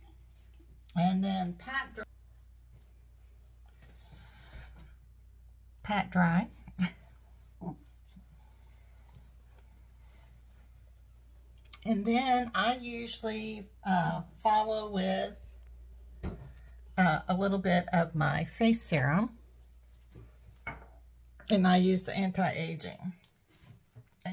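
An older woman speaks calmly, close by, in short bursts.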